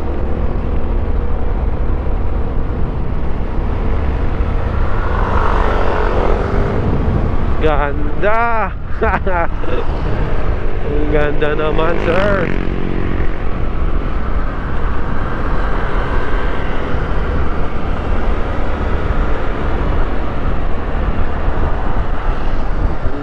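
A scooter engine hums steadily.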